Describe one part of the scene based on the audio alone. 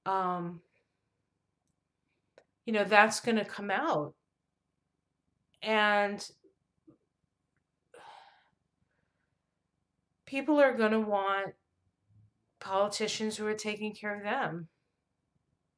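A middle-aged woman speaks calmly and closely into a microphone, in short bursts with pauses.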